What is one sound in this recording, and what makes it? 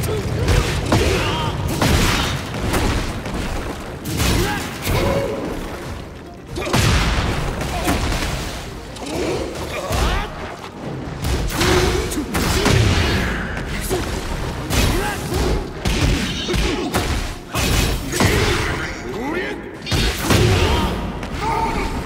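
Heavy blows and impacts land again and again.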